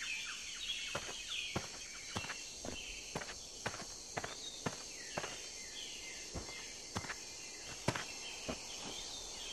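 Footsteps thud and rustle through grass.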